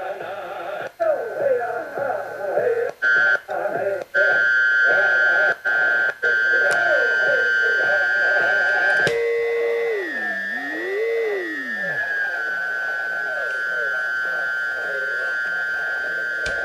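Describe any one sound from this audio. A radio gives off a steady high whistle that wavers in pitch.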